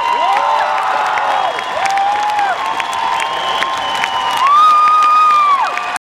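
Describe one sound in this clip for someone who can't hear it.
A crowd claps hands.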